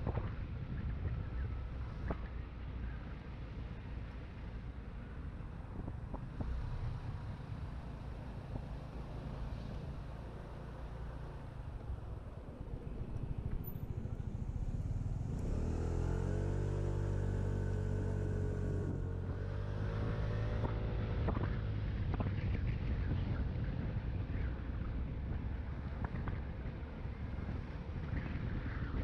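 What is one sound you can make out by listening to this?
Wind rumbles steadily past a moving rider.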